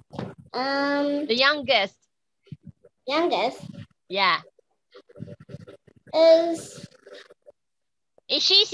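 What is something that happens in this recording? A young girl speaks in a high voice over an online call.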